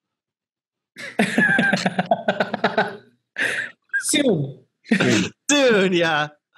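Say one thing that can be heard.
A woman laughs heartily over an online call.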